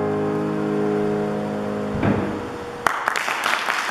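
A piano rings out a final chord that slowly fades.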